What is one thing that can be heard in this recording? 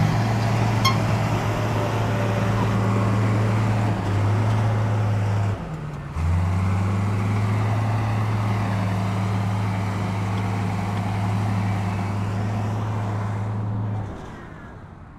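A bulldozer engine drones steadily as it pushes earth.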